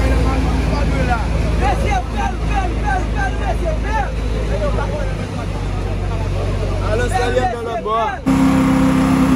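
A crowd shouts and cheers in the distance.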